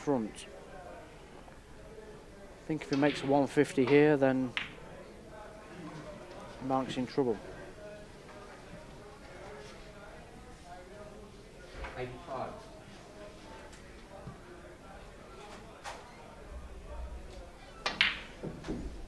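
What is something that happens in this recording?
A cue tip strikes a billiard ball with a sharp click.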